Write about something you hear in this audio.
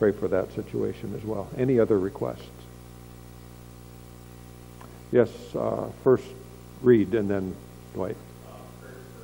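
An older man speaks calmly through a microphone.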